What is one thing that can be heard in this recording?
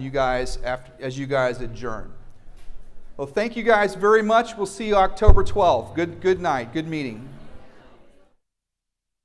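A middle-aged man speaks calmly through a microphone in an echoing room.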